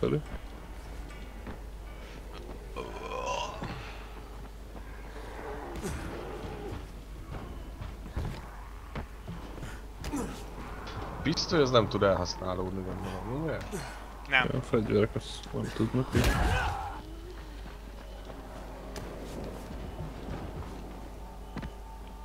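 Footsteps thud quickly across roofs and ground.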